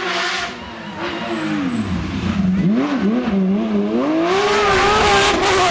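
A rally car roars in and accelerates hard past close by.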